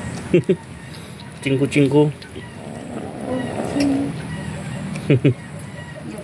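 Cats chew and lap at food up close.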